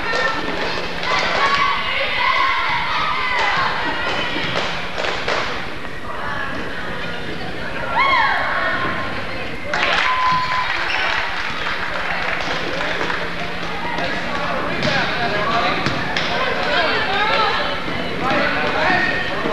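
A crowd cheers and chatters in a large echoing gym.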